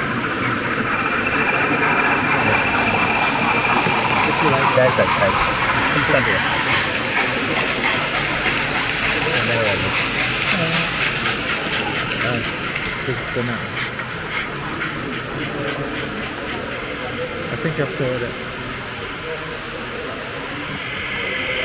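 Model trains rumble and clatter steadily along the tracks.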